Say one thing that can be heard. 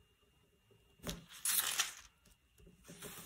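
Thin book pages rustle and flip as they are turned.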